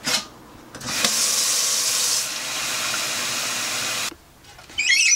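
Water runs from a tap and splashes into a sink.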